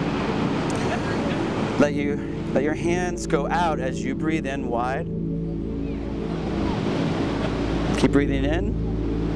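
Ocean waves break and wash onto a beach.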